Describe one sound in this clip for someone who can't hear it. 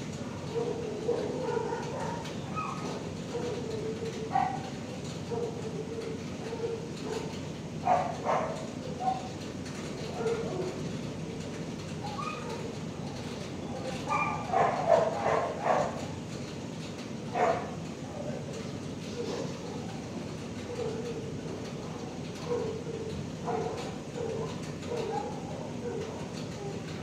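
A dog whimpers softly and whines nearby.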